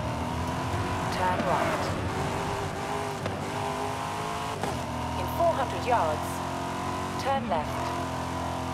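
Tyres squeal on the road through bends.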